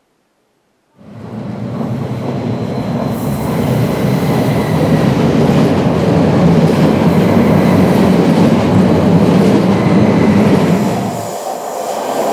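An electric train rushes past close by with a deep roar.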